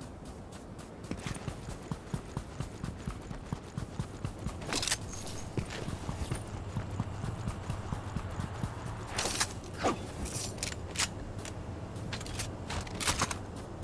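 Footsteps run across sand.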